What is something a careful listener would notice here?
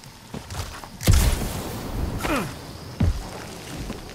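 Jet boots blast with a short roaring whoosh.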